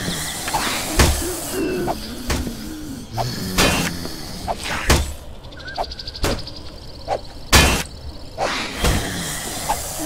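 A stone axe bangs loudly against a wooden door, again and again.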